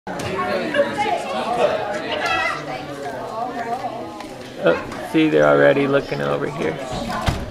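Several adults chat in a room with a lively, echoing hum.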